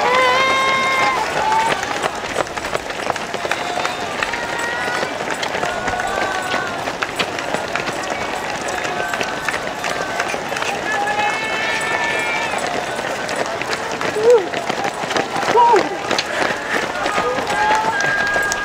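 A crowd of spectators cheers and calls out loudly.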